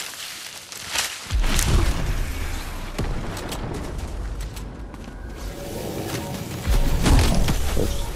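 Footsteps run quickly through grass and leaves.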